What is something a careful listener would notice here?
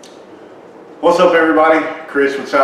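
A middle-aged man speaks calmly into a nearby microphone.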